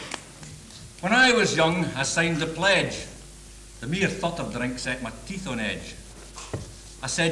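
A man speaks calmly in a moderately echoing room.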